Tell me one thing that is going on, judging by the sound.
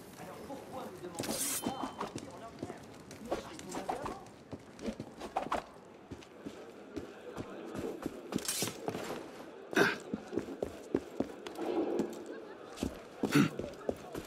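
Footsteps tap on stone and wooden floors.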